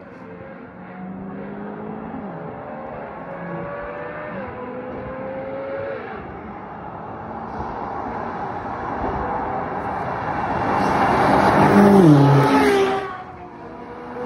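A sports car engine roars in the distance and grows louder as it approaches and speeds past.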